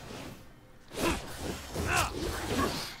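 A magical blast bursts with a crackling whoosh.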